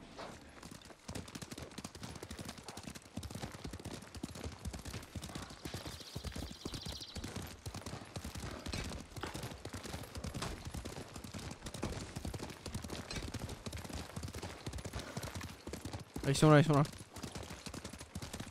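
Horses gallop, hooves pounding on a dirt path.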